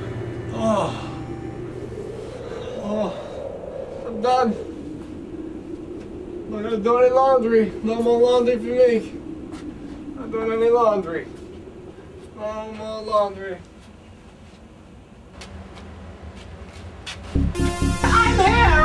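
A man talks in bursts, close by.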